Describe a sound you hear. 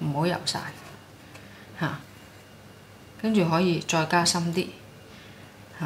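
A paintbrush dabs and strokes softly on paper.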